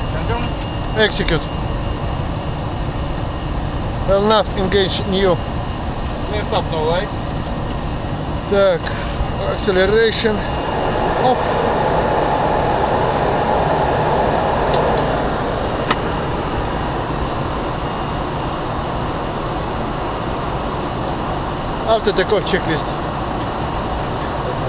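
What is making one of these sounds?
Aircraft engines and rushing air roar steadily.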